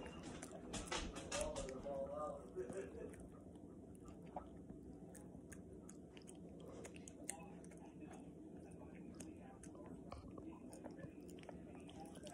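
Fingers scrape food in a metal bowl.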